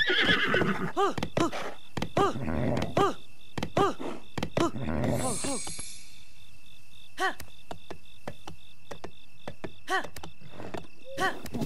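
A horse's hooves thud on the ground.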